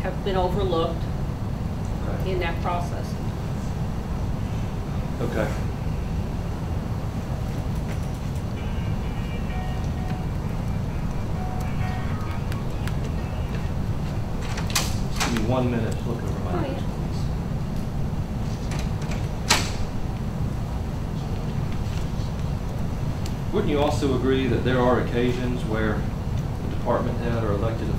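A man speaks calmly, heard at a distance.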